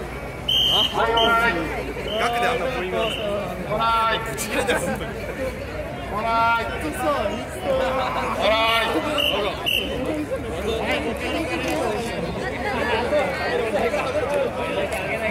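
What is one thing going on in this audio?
A crowd of people shouts and cheers nearby outdoors.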